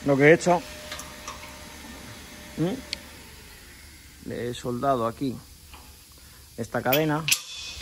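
A metal chain clinks as a hand moves it.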